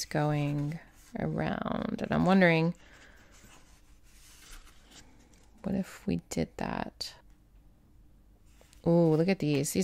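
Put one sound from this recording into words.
Stiff paper sheets rustle and flap as they are turned.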